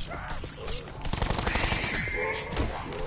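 Rapid gunfire bursts out close by.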